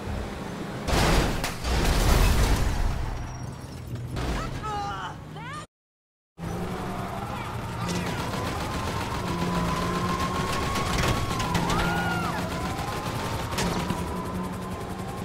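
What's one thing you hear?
A heavy SUV's engine hums as it drives.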